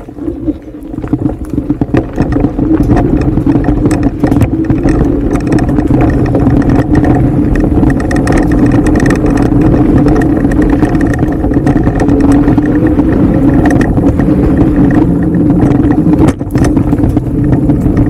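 Wind buffets loudly as the bike rides along.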